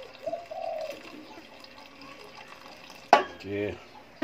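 Liquid pours into a pot.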